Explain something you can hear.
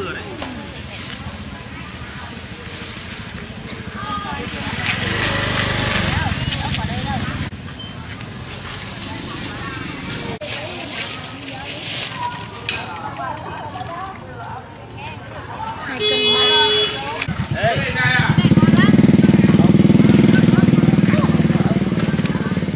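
A woman and a man talk nearby, outdoors.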